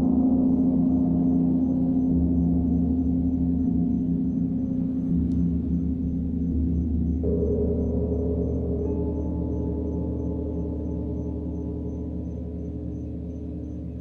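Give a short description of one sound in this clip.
Singing bowls hum with a deep, steady ringing drone.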